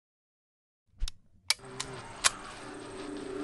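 Pistol shots ring out sharply, several in quick succession.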